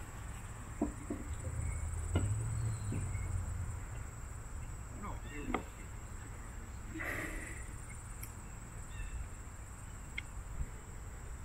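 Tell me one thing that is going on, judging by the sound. Metal parts of a bow click and clack as a man handles them.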